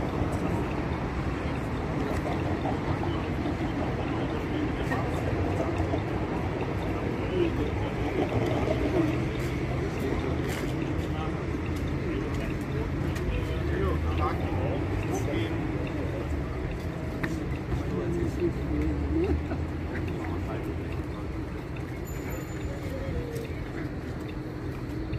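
Men and women talk outdoors nearby.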